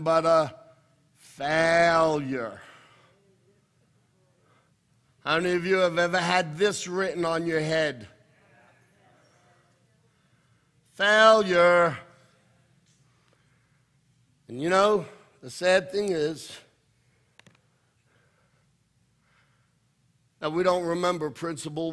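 A middle-aged man speaks into a microphone in bursts, with pauses.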